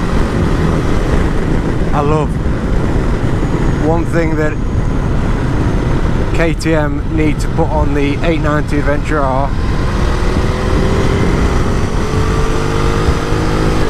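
Wind roars loudly past a moving motorcycle.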